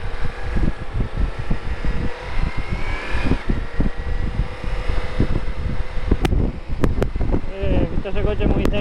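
Wind buffets loudly against a microphone.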